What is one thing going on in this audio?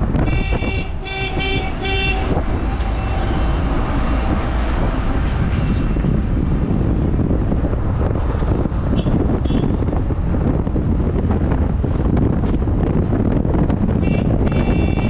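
A vehicle rumbles steadily along a road.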